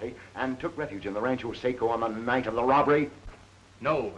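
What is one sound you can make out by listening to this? A middle-aged man speaks urgently, close by.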